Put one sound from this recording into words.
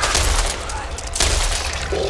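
A shotgun fires in loud, sharp blasts.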